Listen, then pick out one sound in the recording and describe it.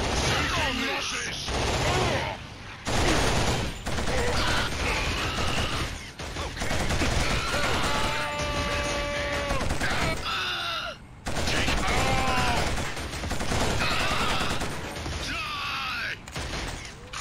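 A machine gun fires in rapid, loud bursts.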